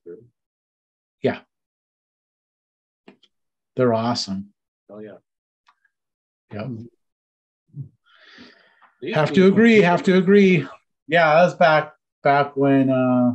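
A middle-aged man talks over an online call, in short bursts.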